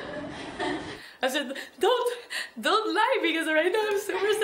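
A young woman speaks emotionally and close to a microphone.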